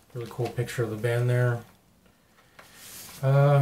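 A record sleeve rustles in a young man's hands.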